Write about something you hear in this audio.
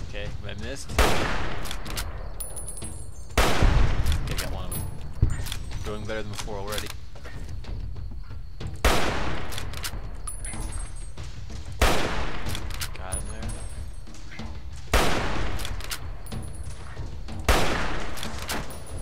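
Rifle shots boom loudly, each followed by a fading echo.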